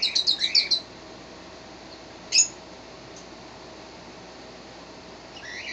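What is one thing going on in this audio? A young fox lets out high, quick chattering squeaks.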